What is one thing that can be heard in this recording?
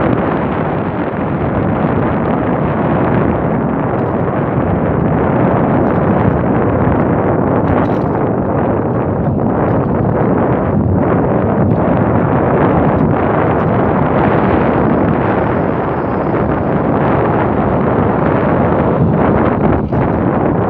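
Bicycle tyres roll over rough tarmac.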